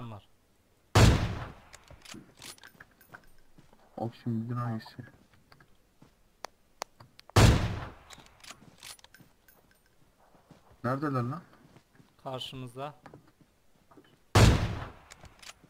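A rifle fires loud single shots that echo away.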